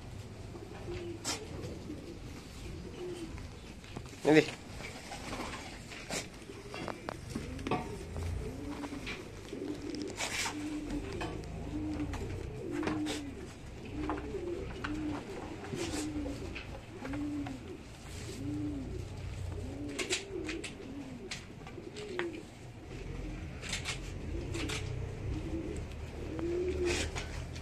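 Hooves shuffle and rustle through dry straw.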